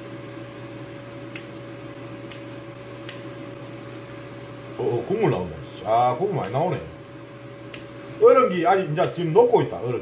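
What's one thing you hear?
Kitchen scissors snip through food.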